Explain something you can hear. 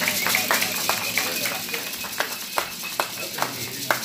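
A man claps his hands.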